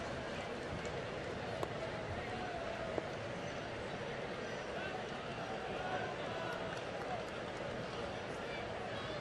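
A stadium crowd murmurs and calls out steadily outdoors.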